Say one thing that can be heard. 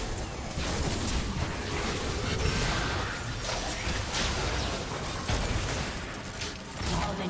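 Video game combat effects whoosh and crackle in quick bursts.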